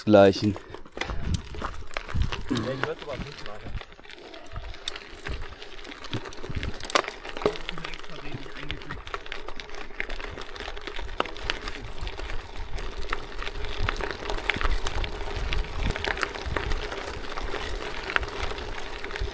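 Bicycle tyres crunch and rumble over a gravel track.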